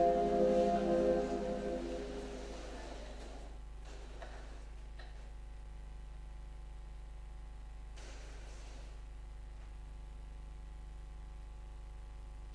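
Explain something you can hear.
Footsteps shuffle softly across a large echoing hall.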